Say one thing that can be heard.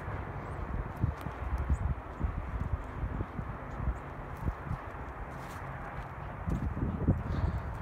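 Footsteps crunch through dry brush and twigs.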